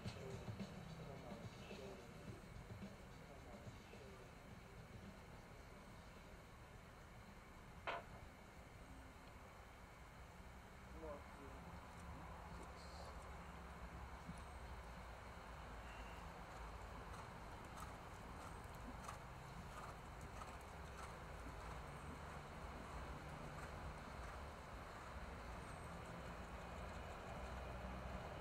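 A horse trots over soft sand with dull, muffled hoofbeats.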